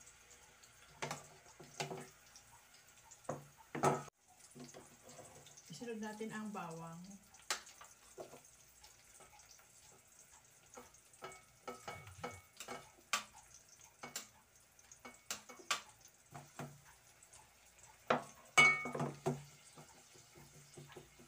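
A metal ladle clinks against dishes and a metal pot.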